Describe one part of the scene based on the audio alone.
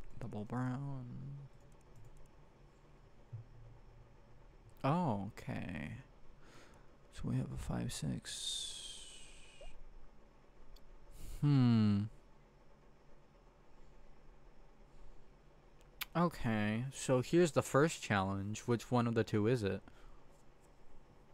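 A young man speaks with animation into a close microphone, in short bursts with pauses.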